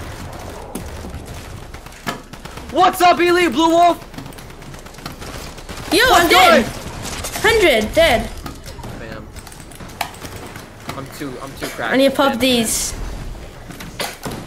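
Keyboard keys clatter rapidly.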